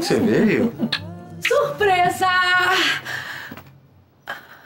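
A woman laughs playfully and loudly, close by.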